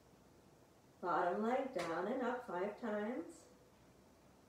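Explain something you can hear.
A woman speaks calmly, giving instructions close to a microphone.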